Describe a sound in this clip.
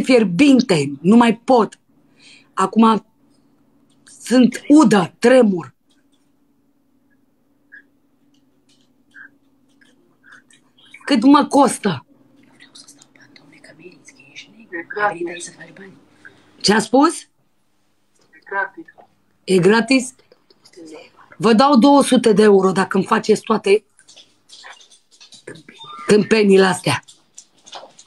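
A woman talks and laughs loudly through a phone call.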